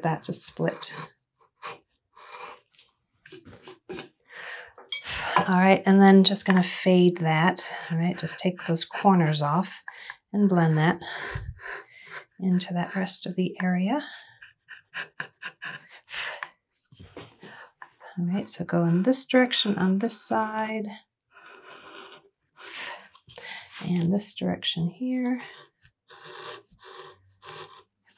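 A chisel scrapes and shaves wood in short strokes.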